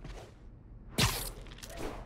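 A figure lands with a heavy thud.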